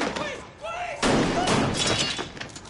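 A man crashes heavily onto a hard floor.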